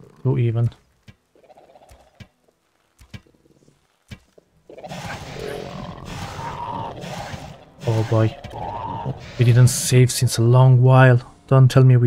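Blows land on a creature in a fight.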